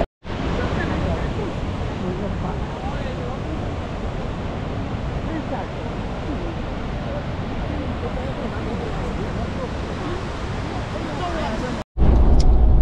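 Waves crash and surge against rocks below.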